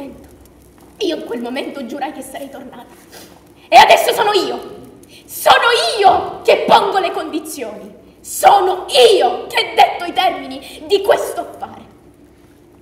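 A young woman speaks loudly and dramatically through a headset microphone.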